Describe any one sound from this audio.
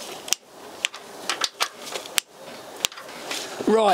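Metal tools clink and tap against an engine.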